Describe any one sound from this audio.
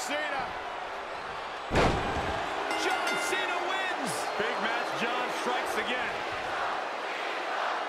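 A large crowd cheers and whistles in a big arena.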